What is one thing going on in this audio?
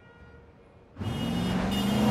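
A car engine accelerates as vehicles drive past.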